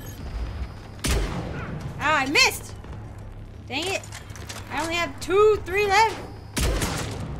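A rifle fires single loud shots that boom and echo.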